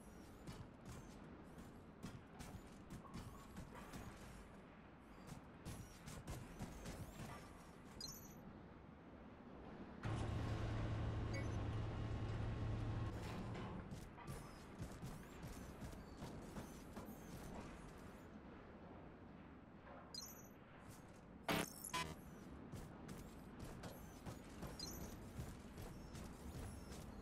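Footsteps clatter quickly on metal grating.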